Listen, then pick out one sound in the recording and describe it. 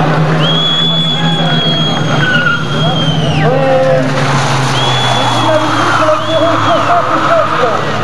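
Car tyres squeal loudly on tarmac.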